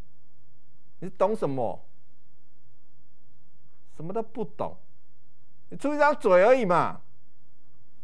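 A middle-aged man speaks calmly into a microphone in short bursts, with pauses.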